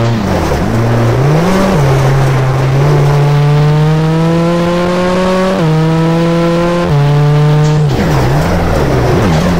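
A rally car engine revs high, rising through the gears.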